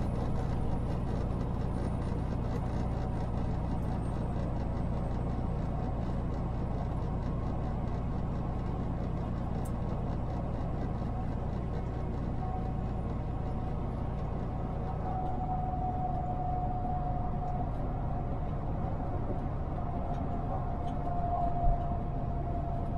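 A vehicle's engine hums steadily as it drives along a highway.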